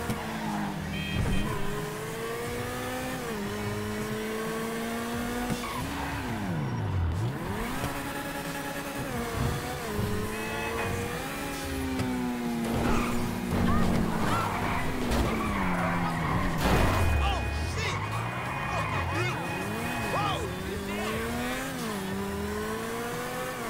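A sports car engine revs up and down as the car speeds along.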